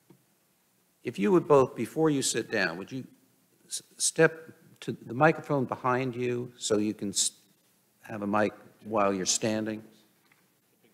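A man speaks clearly through a microphone in a large room.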